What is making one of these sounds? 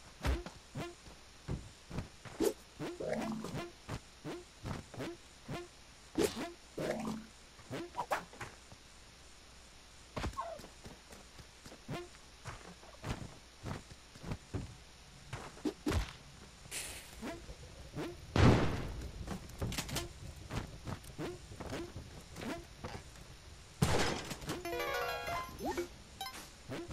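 Short game sound effects thud and click in quick succession.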